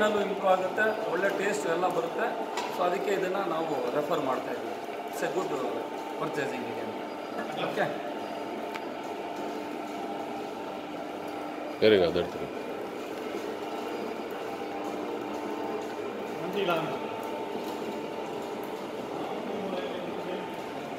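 A grinding machine hums steadily.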